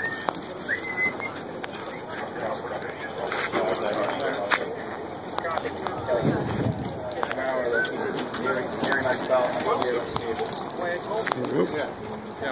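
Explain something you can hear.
A crowd of men talk nearby outdoors.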